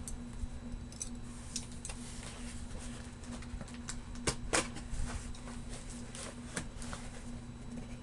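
Cardboard rustles and scrapes as a box is handled close by.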